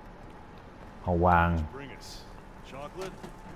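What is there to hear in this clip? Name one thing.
A man speaks urgently nearby.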